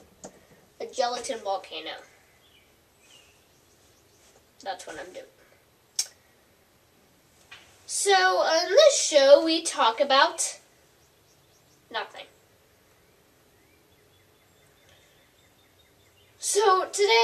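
A young girl talks close by in short, playful bursts.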